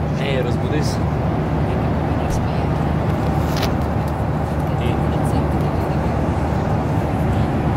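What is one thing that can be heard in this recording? A steady loud engine roar drones.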